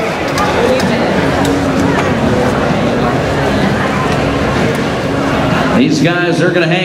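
A large crowd murmurs and chatters in a big echoing arena.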